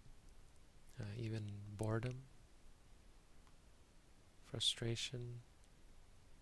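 A man speaks calmly and slowly, close to a microphone, with long pauses.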